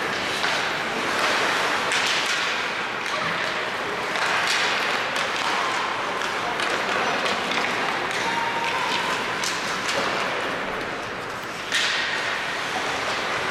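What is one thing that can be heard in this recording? Skates scrape and hiss on ice in a large echoing arena.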